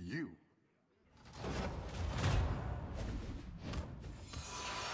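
Video game combat sound effects clash and whoosh.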